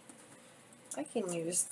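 A young woman speaks briefly and quietly, close by.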